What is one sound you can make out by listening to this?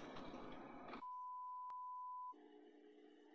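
A steady electronic test tone beeps.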